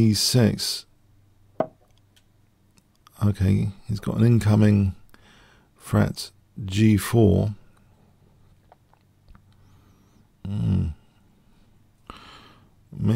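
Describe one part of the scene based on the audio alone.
An older man speaks calmly into a microphone in short bursts.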